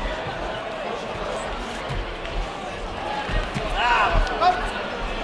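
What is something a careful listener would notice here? Padded gloves thump against bodies in quick blows.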